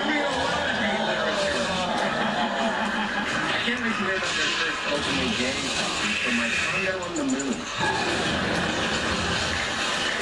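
Video game sound effects play from a television speaker.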